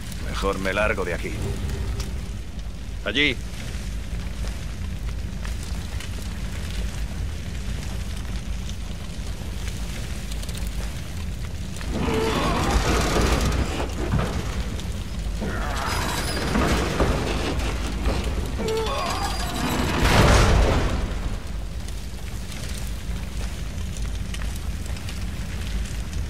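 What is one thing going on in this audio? Fire roars and crackles steadily.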